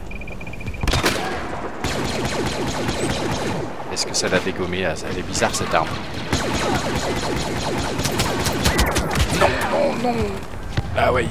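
Laser blasters fire in rapid bursts of sharp shots.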